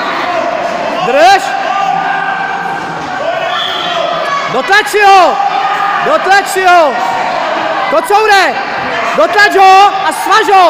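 Men in the crowd shout loudly in bursts.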